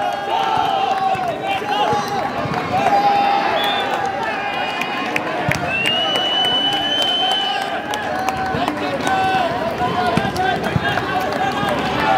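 A crowd of spectators chatters and shouts loudly outdoors.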